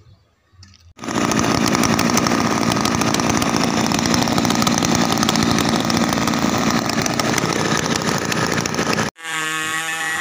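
A chainsaw engine roars loudly at close range.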